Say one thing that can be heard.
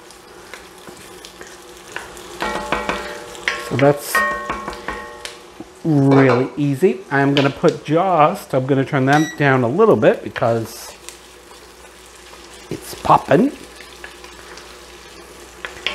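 A wooden spoon scrapes and stirs diced potatoes in a pot.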